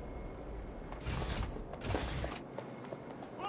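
Heavy blows thud as a man is knocked down.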